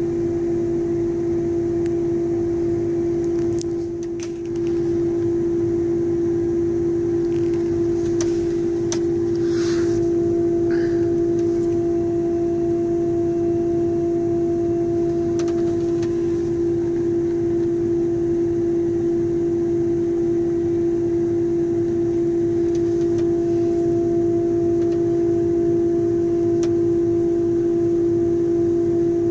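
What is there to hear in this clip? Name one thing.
A tractor engine hums steadily and loudly, heard from inside the cab.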